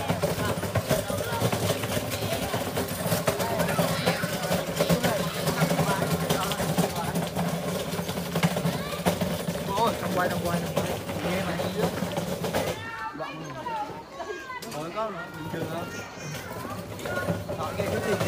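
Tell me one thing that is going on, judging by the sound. A group of people talk and call out nearby, outdoors.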